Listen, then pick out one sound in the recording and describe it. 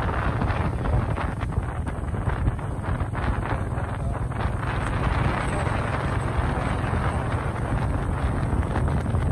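A motorbike engine hums steadily nearby.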